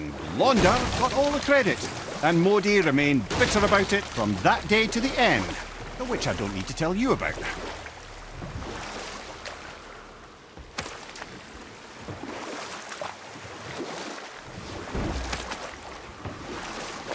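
Water splashes and swishes around a small rowing boat.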